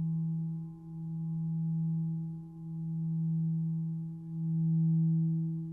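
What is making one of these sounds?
A crystal singing bowl hums with a steady, deep ringing tone that swells and fades in slow waves.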